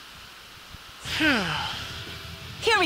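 A sword swings in a fight.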